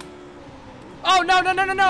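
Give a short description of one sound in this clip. A young man speaks loudly with animation into a microphone.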